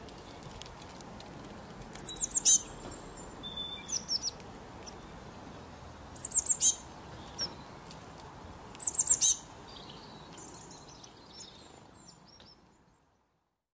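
A small bird pecks softly at tree bark.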